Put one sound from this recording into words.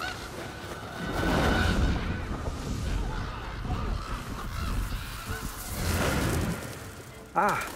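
A flock of birds flaps and rushes past with a loud roar of wings.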